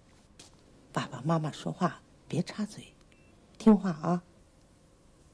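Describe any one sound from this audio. An elderly woman speaks calmly and gently nearby.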